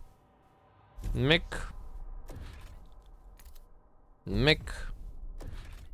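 A soft whooshing chime plays as a game menu opens.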